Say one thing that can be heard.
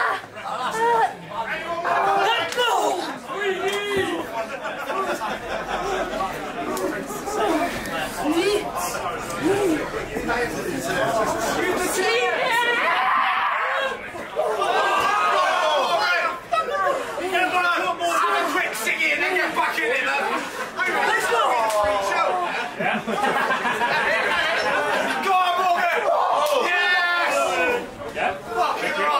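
A crowd of young men and women chatters and cheers close by outdoors.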